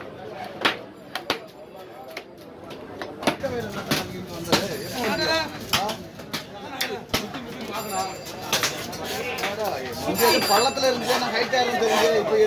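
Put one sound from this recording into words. A heavy knife chops through fish on a wooden block with sharp thuds.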